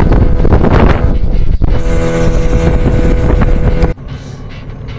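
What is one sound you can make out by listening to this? Water rushes and splashes against a moving boat.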